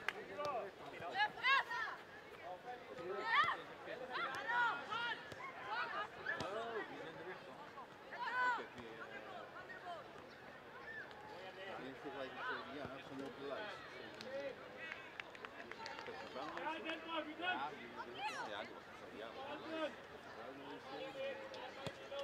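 Young players shout and call to one another across an open outdoor pitch.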